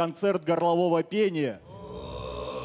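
A young man speaks with animation into a handheld microphone.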